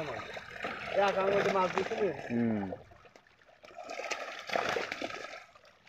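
Fish flap and splash in a net.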